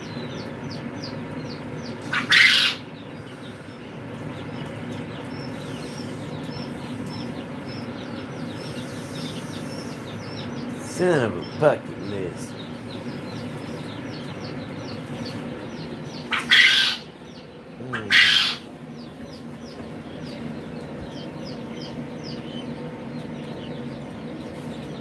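Many chicks peep steadily, high and shrill.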